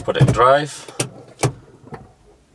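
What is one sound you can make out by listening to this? A gear lever clicks into place.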